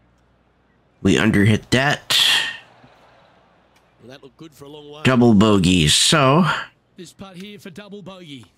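A man talks with animation close to a headset microphone.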